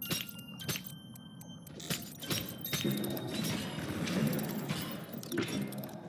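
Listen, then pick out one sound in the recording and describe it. A metal hatch clanks open.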